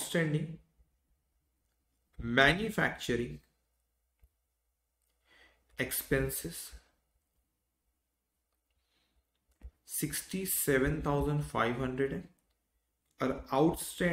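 A man speaks calmly and clearly, close to a microphone, in short phrases with pauses.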